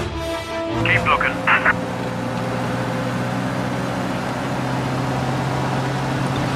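An old car engine hums steadily.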